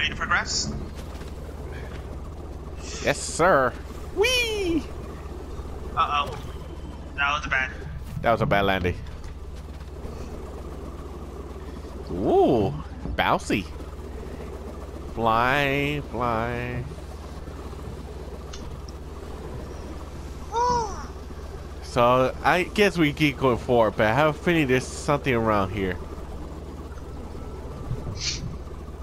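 Small propeller toys whir and chirp in short sliding bursts.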